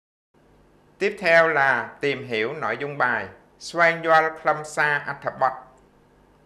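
A man speaks calmly and clearly into a microphone, close by.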